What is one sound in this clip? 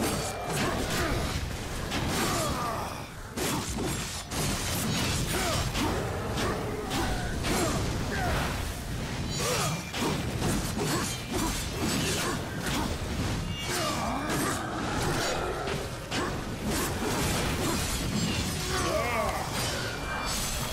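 A young man talks with animation through a headset microphone.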